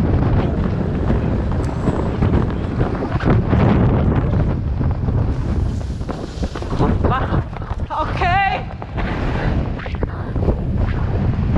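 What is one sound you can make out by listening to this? Wind rumbles loudly across the microphone outdoors.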